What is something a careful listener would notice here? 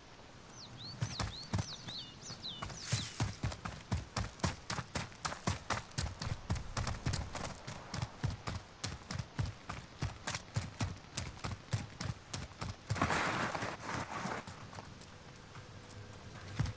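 Quick footsteps run over dirt and gravel.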